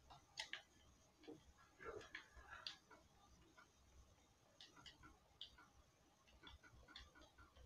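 Video game menu sounds click through a television speaker.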